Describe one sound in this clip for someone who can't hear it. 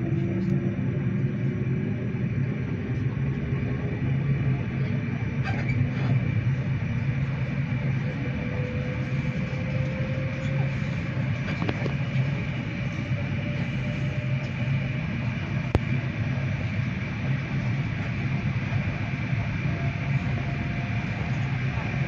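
A train's motor whines with a slowly rising hum.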